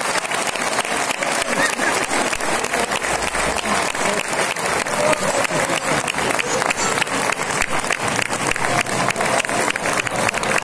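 A large audience claps in rhythm in a big echoing hall.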